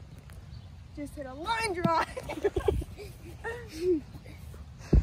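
A boy talks with animation close by.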